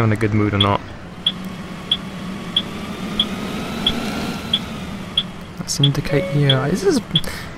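A bus engine hums steadily as the bus drives along.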